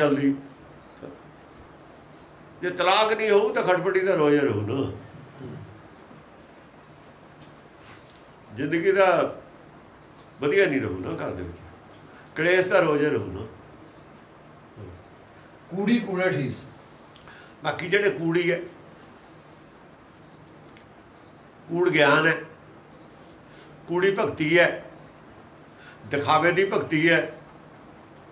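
An elderly man speaks slowly and calmly, close by, with long pauses between phrases.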